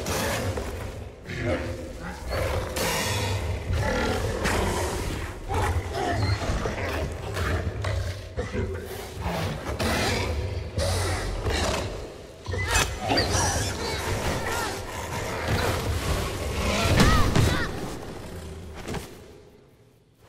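A large beast thrashes and rumbles loudly.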